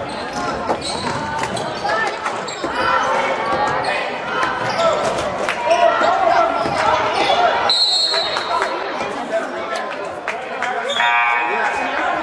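A crowd of spectators chatters and cheers, echoing in a large hall.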